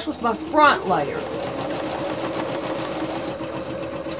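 A sewing machine whirs steadily as it stitches.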